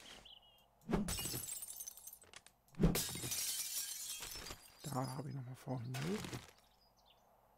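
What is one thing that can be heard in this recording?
A wooden club smashes against wood with heavy thuds and cracks.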